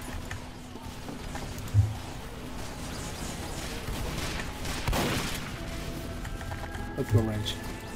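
Footsteps thud in a video game as a player runs.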